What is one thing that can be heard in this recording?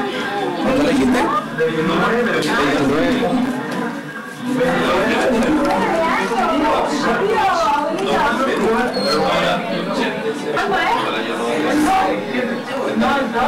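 A man speaks through a small television speaker.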